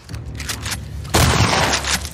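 A gunshot cracks loudly.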